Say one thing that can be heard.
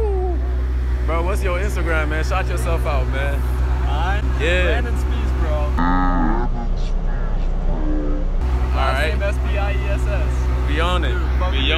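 A young man talks and laughs nearby with animation.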